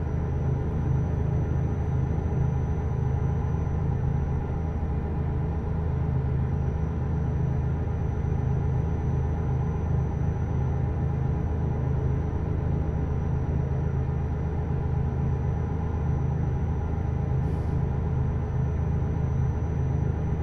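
A truck engine hums low and steady as it drives.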